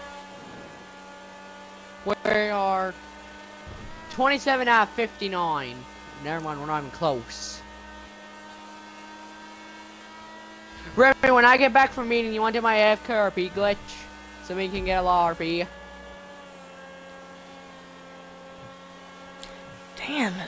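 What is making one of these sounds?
A race car engine hums steadily at speed.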